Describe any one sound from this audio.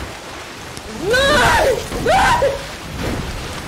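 A young woman screams loudly in fright.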